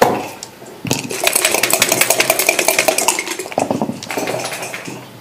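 Dice rattle in a cup and tumble onto a board.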